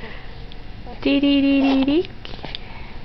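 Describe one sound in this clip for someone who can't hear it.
A baby lets out a loud, sustained squeal.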